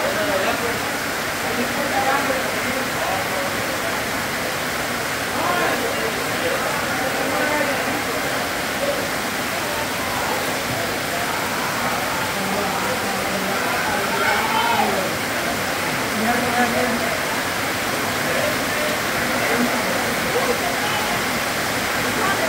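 Men and women talk nearby in a lively group.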